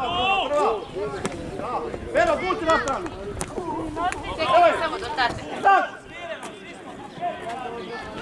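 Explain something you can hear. Young boys shout to each other outdoors.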